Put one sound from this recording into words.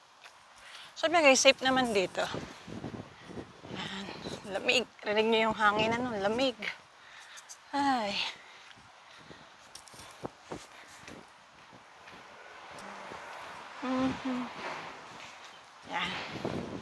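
A middle-aged woman talks close to a headset microphone, calmly and with pauses.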